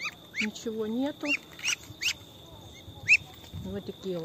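A Muscovy duckling peeps.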